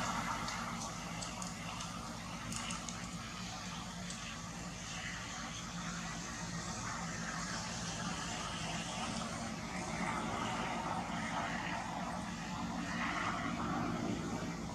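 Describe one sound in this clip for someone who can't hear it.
Leaves rustle as a monkey pulls on a leafy branch.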